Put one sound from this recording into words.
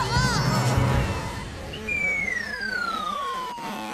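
A young girl cries out with animation, close up.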